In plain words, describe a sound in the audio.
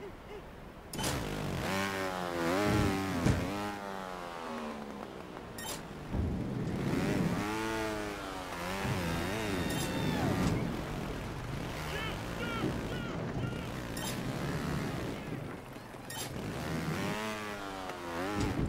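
A motorbike engine revs up and down in loud, rising and falling bursts.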